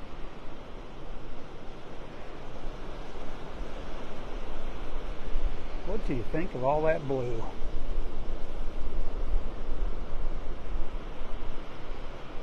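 Waves wash gently onto a beach.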